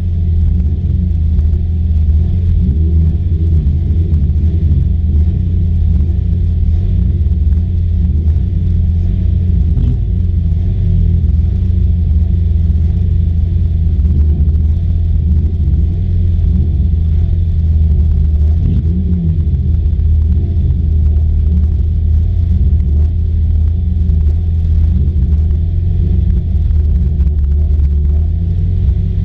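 A stripped-out banger race car engine idles, heard from inside the cabin.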